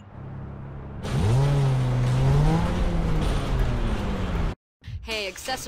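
A car engine revs and roars as the car drives off.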